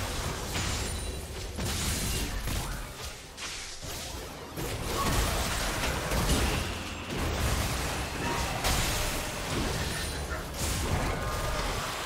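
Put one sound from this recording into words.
Magic spells whoosh and crackle in a fast video game battle.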